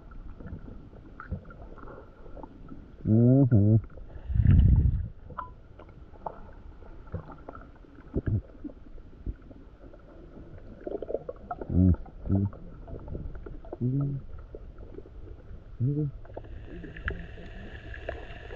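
Muffled water sounds swirl and knock underwater.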